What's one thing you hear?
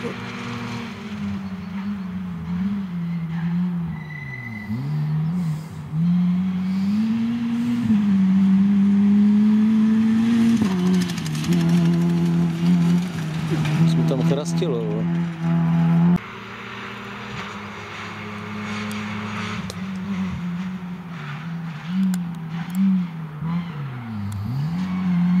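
A rally car engine revs at full throttle through gear changes.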